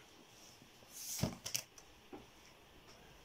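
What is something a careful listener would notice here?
Sheets of paper rustle as they are lifted and flipped.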